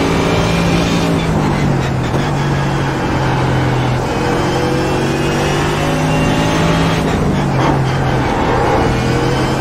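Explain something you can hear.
A race car engine falls in pitch as the car brakes hard.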